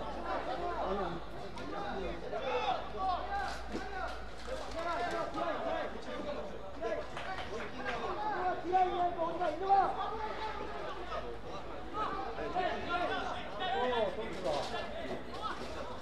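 Several men shout and call out on the field at a distance, outdoors.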